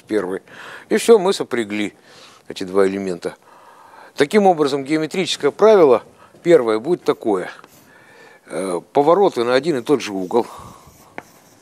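A middle-aged man lectures in a large echoing hall.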